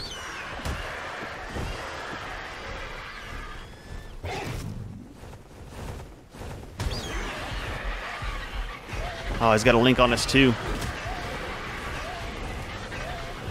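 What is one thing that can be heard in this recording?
Large wings flap.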